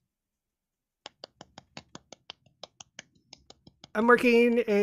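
A man claps his hands several times.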